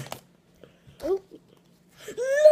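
A young boy speaks close to a microphone.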